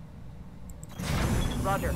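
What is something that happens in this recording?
A heavy gun fires with a loud, rumbling boom.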